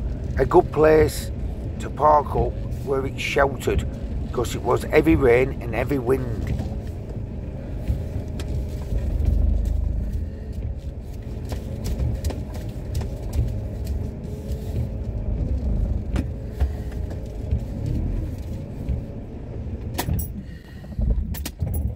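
A windscreen wiper sweeps across wet glass.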